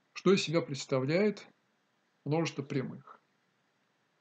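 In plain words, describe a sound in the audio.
An elderly man speaks calmly and close to the microphone.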